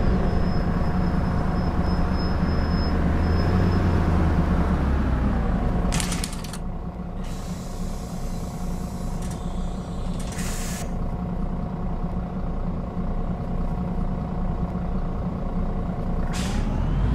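A bus engine rumbles steadily while idling.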